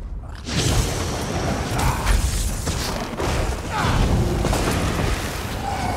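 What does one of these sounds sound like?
Weapons strike in a fight.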